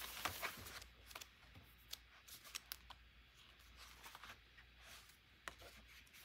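Paper pages rustle as a book is handled.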